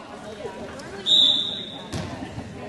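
A referee blows a whistle sharply.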